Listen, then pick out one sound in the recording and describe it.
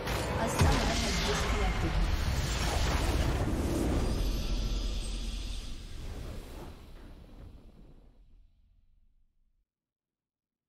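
A triumphant game fanfare swells and then fades away into silence.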